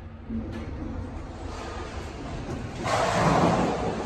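Elevator doors slide open with a soft rumble.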